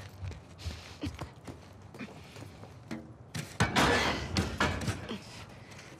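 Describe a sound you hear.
Footsteps and hands knock on a ladder's rungs during a climb.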